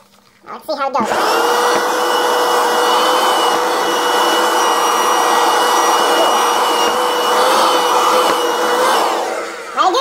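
A handheld vacuum cleaner whirs with a steady high whine.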